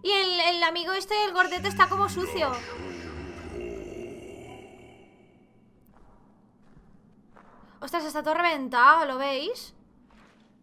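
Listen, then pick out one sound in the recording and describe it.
A young woman sings in a wavering voice close to a microphone.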